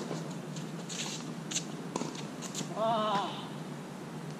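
Tennis shoes squeak and scuff on a hard court.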